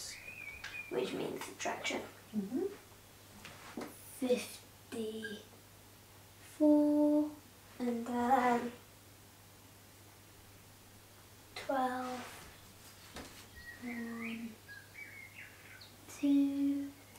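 A young boy speaks calmly and clearly, close by.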